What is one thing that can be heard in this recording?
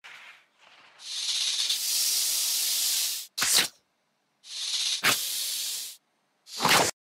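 A snake hisses loudly in long bursts.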